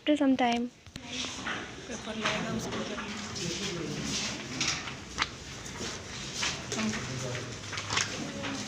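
Young people chatter quietly in a room.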